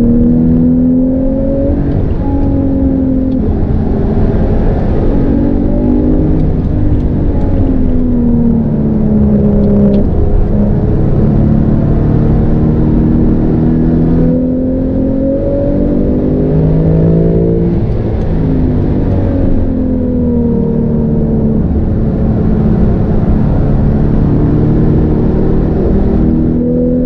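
A sports car engine roars loudly from inside the cabin, revving up and down through the gears.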